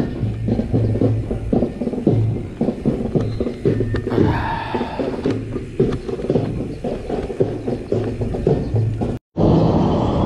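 A bicycle rattles and clicks over bumpy paving.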